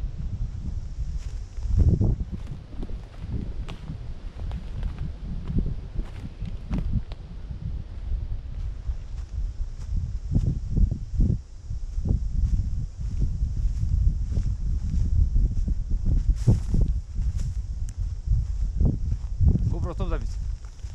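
Footsteps crunch on dry forest ground.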